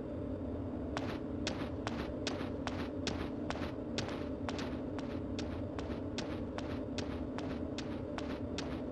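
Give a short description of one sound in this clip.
Footsteps tap on hard stone at a steady walking pace.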